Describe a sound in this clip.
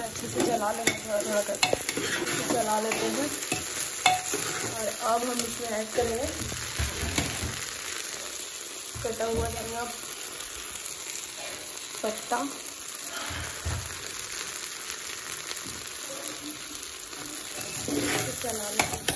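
A metal spoon scrapes and stirs rice in a metal pot.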